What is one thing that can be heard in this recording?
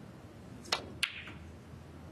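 Billiard balls knock together.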